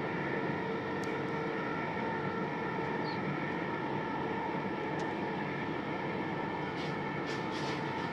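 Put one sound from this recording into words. Traffic hums steadily on a nearby elevated road.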